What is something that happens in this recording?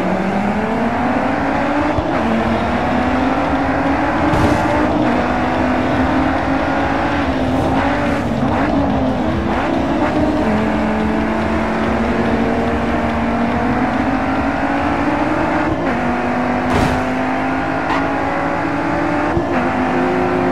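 Other racing cars' engines whine close by.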